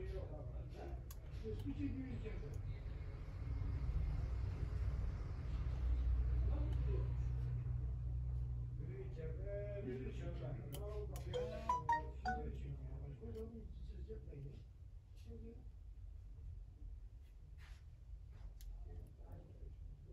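A small screwdriver clicks and scrapes against tiny screws.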